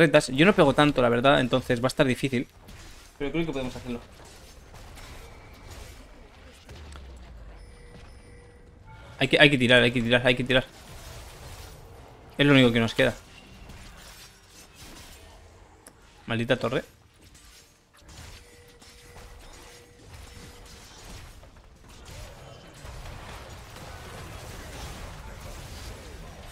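Magic spells and weapon blows clash in a video game battle.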